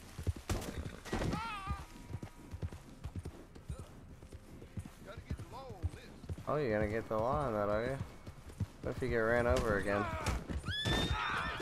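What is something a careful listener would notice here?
Horse hooves thud on grass at a gallop.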